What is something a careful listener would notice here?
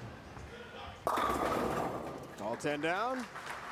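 Bowling pins crash loudly as a ball strikes them.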